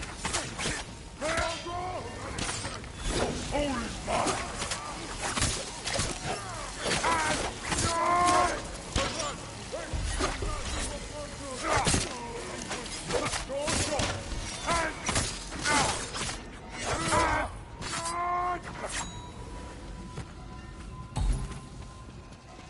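Swords clash and strike in quick bursts.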